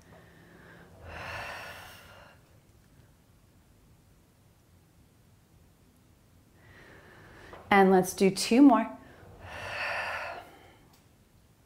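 A young woman breathes out audibly.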